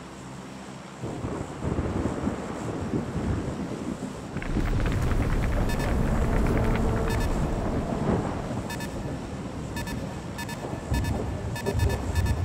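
A four-engine propeller transport plane drones in flight.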